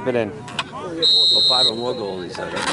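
A referee's whistle blows once, briefly.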